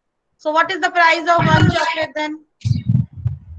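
A young girl speaks calmly over an online call.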